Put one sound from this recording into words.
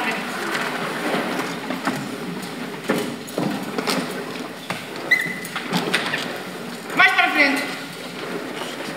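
Chairs and footsteps knock and shuffle on a hard floor.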